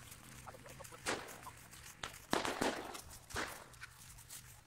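Footsteps swish and rustle through long grass.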